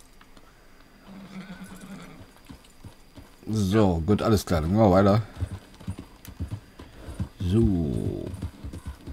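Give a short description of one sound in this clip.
A horse's hooves thud steadily on a dirt track.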